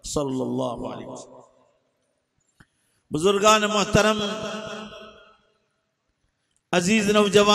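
An elderly man speaks with animation into a microphone, in drawn-out phrases with pauses, heard through a loudspeaker.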